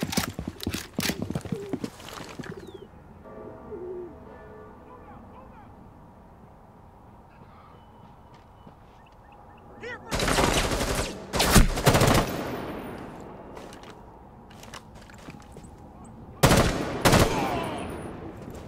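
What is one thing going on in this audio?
A rifle fires rapid bursts of gunshots at close range.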